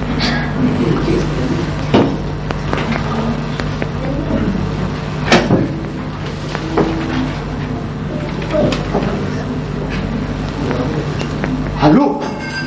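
A man talks animatedly into a telephone, heard from a distance with room echo.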